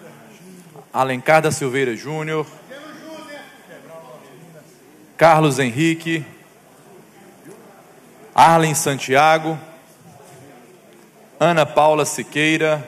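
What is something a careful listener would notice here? A young man speaks calmly into a microphone in bursts, with pauses between.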